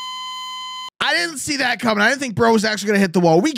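A young man speaks close to a microphone.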